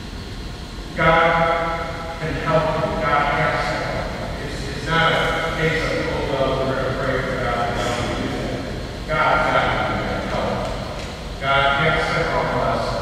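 A man sings through a microphone in a large echoing hall.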